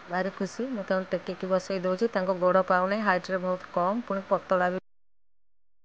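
A woman sings close by.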